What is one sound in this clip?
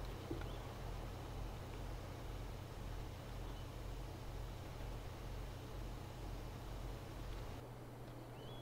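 A tractor engine drones steadily at a low pitch.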